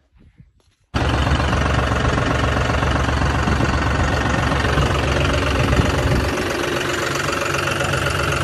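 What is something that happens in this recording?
A tractor engine runs with a steady loud rumble.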